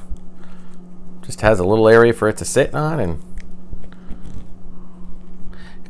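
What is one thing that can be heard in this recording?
Small plastic parts click together in a man's hands.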